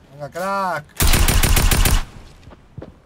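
Gunshots fire in a rapid burst in a video game.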